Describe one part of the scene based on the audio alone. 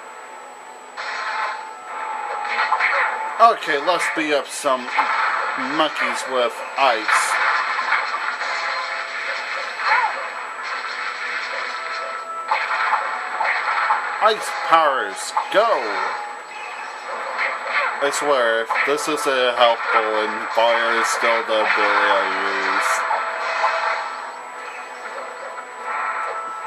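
Magical blasts whoosh and crackle in a fast fight.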